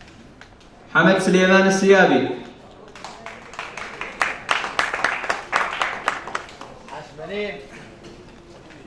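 A young woman announces through a loudspeaker in an echoing hall.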